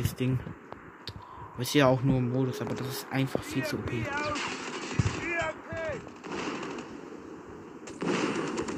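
A rifle fires a few sharp shots.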